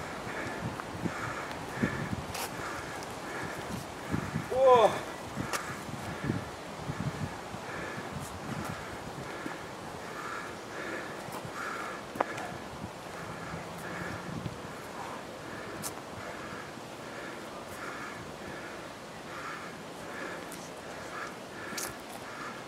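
Footsteps pad quickly on paving stones.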